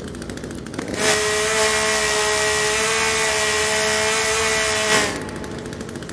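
A chainsaw revs loudly with a high whine.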